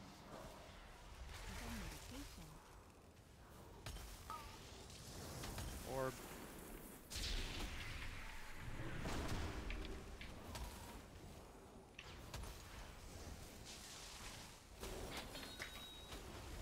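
Magic spells whoosh and crackle in bursts amid a fight's clashing effects.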